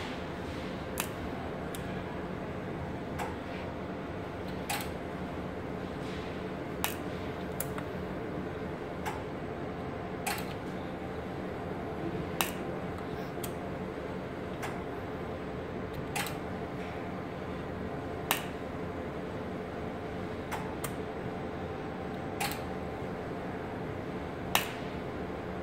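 Switches click now and then.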